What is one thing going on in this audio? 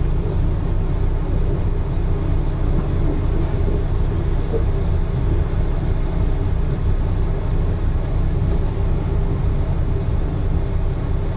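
A train engine drones with a low, steady hum.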